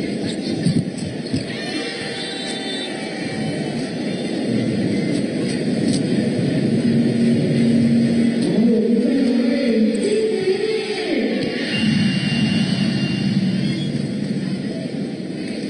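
A crowd cheers and murmurs in a large indoor arena.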